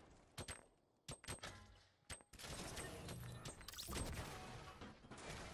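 Gunshots crack in quick bursts nearby.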